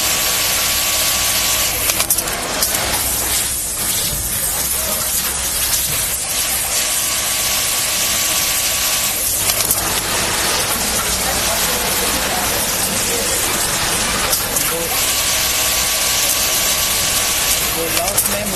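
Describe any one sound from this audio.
A sewing machine whirs in steady bursts as it stitches.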